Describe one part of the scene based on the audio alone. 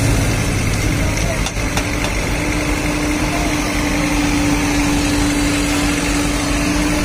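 An excavator's diesel engine rumbles and hums steadily nearby.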